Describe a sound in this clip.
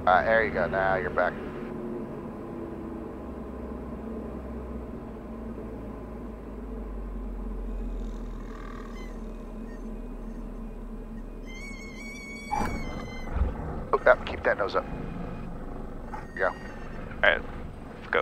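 A man speaks briefly through a headset intercom.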